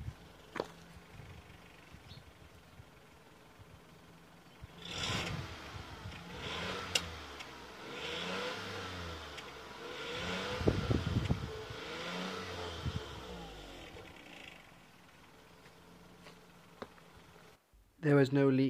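A car engine idles close by.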